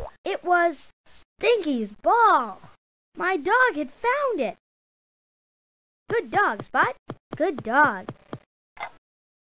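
A small dog barks.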